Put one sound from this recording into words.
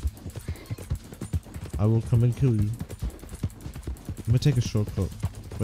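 A horse gallops, its hooves thudding on a dirt track.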